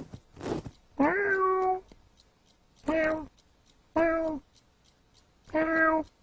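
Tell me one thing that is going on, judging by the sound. A cat meows loudly and insistently, again and again.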